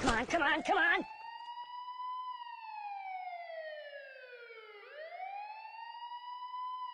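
A siren wails up and down.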